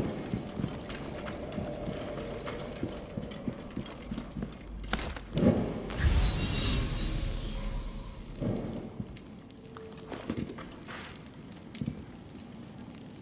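A torch flame crackles and roars.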